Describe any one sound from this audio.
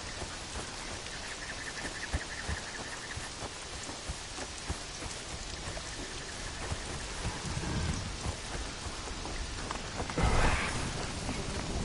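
Footsteps rustle through dense leafy plants.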